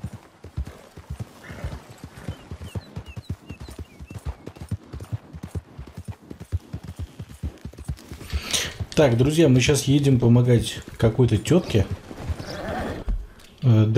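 Horse hooves thud rhythmically on a dirt trail at a gallop.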